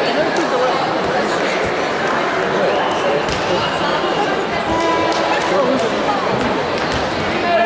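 A crowd of voices murmurs and chatters in a large echoing hall.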